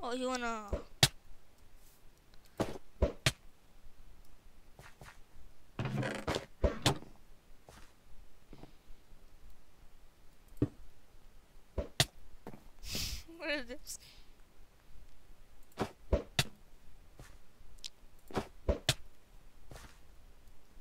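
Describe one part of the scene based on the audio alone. Stone blocks are placed with short, sharp knocks.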